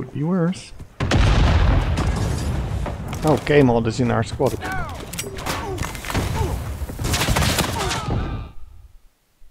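Gunfire cracks nearby in rapid bursts.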